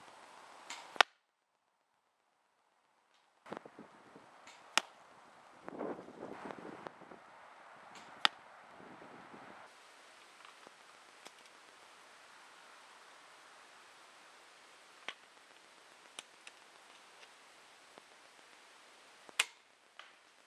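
An airsoft rifle fires sharp snapping shots.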